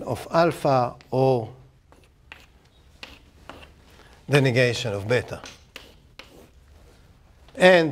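A middle-aged man speaks clearly, lecturing.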